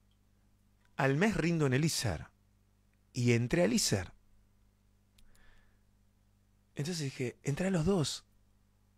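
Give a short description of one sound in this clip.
A young man speaks expressively into a close microphone, in short bursts with pauses.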